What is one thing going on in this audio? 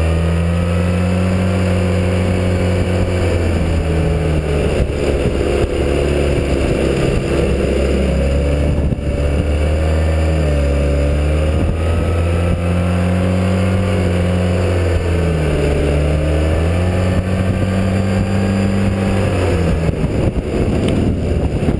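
A motorcycle engine hums steadily, its pitch rising and falling as it speeds up and slows down.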